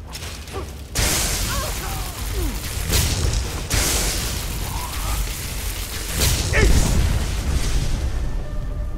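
Magic lightning crackles and sizzles loudly.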